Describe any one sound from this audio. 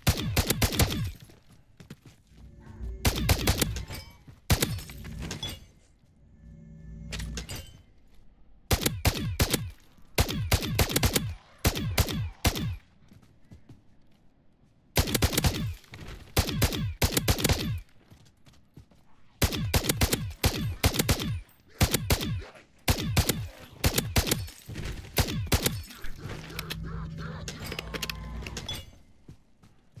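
A rifle fires in quick bursts of sharp shots.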